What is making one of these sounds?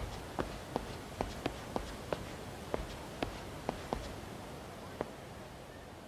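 Hard-soled shoes click on stone paving with quick footsteps.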